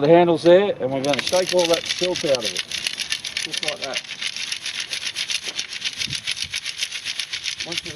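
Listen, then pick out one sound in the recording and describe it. Gravel rattles rapidly in a shaken sieve.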